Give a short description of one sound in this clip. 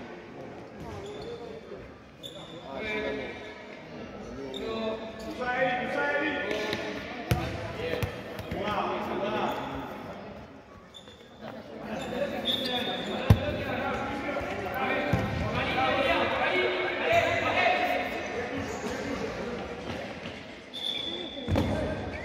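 Sneakers squeak on a hard floor.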